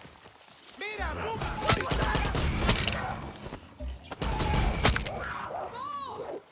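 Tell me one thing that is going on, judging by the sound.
A rifle fires loudly.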